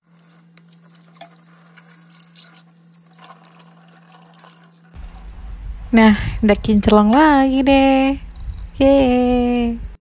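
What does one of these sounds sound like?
Water runs from a tap and splashes into a metal pot.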